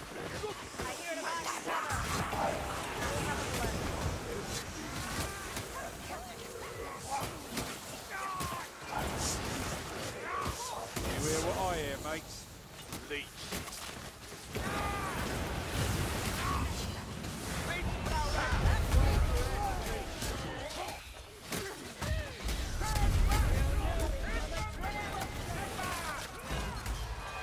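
Blades slash and thud against bodies in a frantic fight.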